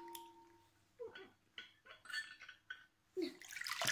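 Water splashes as a hand stirs it in a bowl.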